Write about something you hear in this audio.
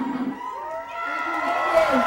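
A young woman sings into a microphone over loudspeakers.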